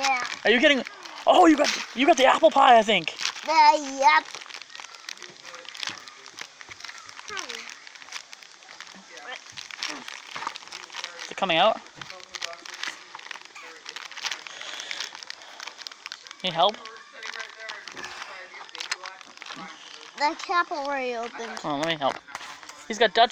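Thin plastic crinkles and rustles as small hands pull at it.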